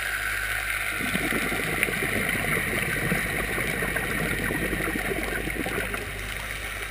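Air bubbles from a diver's breathing gurgle and rush underwater in bursts.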